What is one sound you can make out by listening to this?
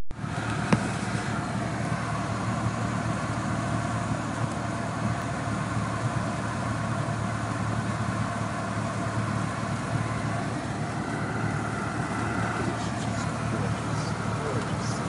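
A small plane's propeller engine drones steadily up close.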